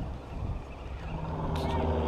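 A fishing reel clicks and whirs as it is handled.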